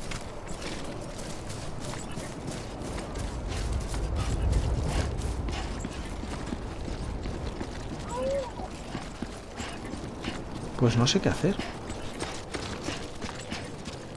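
Footsteps crunch and thud steadily.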